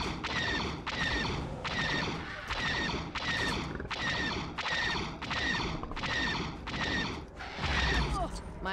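A heavy gun fires in rapid, repeated bursts.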